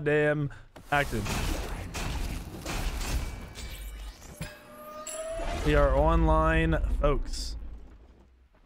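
Loud game blasts and whooshes burst out.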